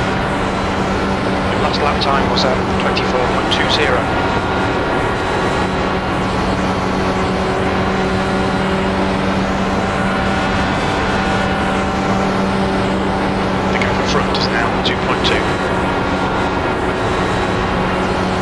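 A single-seater race car engine in a racing game drones at full throttle.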